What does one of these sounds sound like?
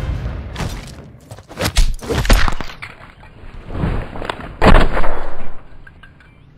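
Loud gunshots and heavy blows land in quick bursts.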